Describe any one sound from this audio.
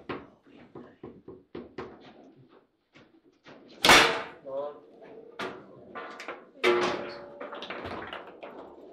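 Foosball rods clack and a ball knocks sharply against the table's walls.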